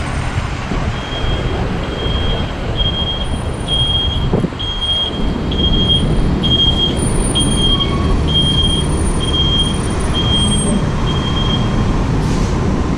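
A crossing signal beeps in a steady rhythm.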